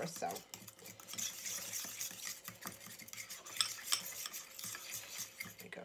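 A fork whisks quickly in a bowl, clicking and scraping.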